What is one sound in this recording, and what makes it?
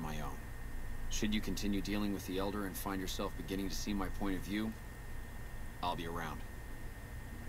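A man speaks calmly in a low, steady voice.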